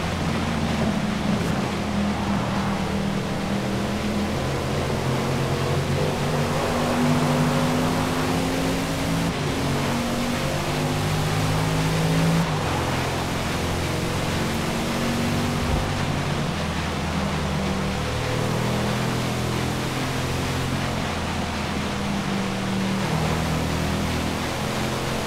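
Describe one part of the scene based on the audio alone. A car engine roars at high revs, shifting gears as it speeds up.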